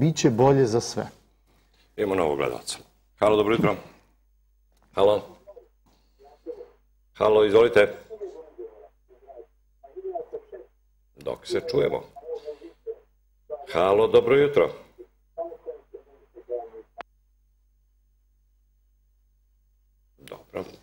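A man speaks calmly into a close microphone, with short pauses.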